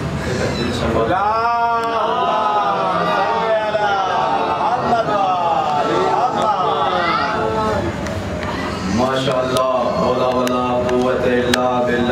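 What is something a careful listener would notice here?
A young man chants in a melodic, sorrowful voice through a microphone and loudspeaker, in an echoing room.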